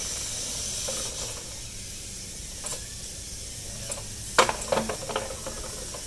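A plastic bottle clatters and scrapes across a hard floor.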